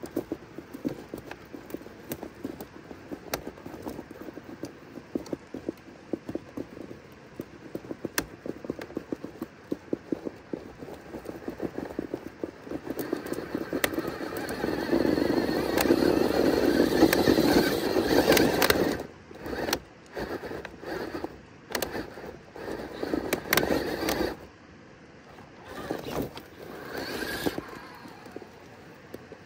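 A small electric motor whines as a toy truck crawls over rock.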